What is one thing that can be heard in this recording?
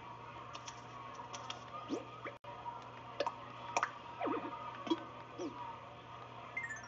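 Soft electronic blips click briefly now and then.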